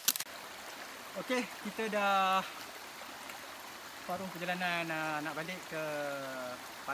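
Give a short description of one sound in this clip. A man speaks clearly, close by, outdoors.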